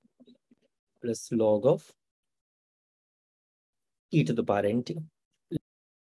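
A man speaks calmly into a close microphone, in short bursts with pauses.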